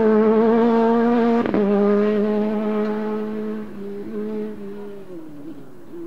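A rally car engine roars loudly as the car speeds away and slowly fades.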